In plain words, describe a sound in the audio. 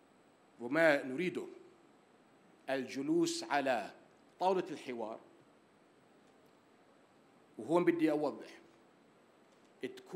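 An older man speaks deliberately into a microphone in short phrases, with pauses.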